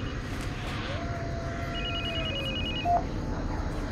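A mobile phone rings with a trilling ringtone.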